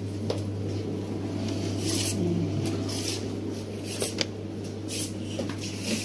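A plastic bottle crinkles as it is handled.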